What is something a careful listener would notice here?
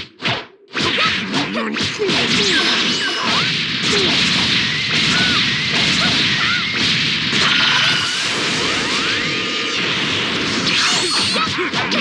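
Punches and kicks land with sharp impacts.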